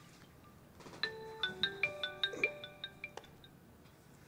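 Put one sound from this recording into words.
A phone plays a ringtone melody.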